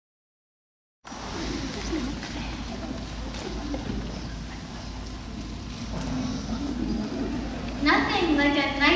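A young girl speaks on a stage, heard from out in the audience.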